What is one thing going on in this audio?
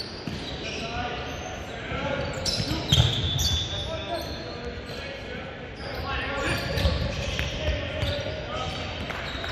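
A volleyball thumps off hands and arms in a large echoing gym.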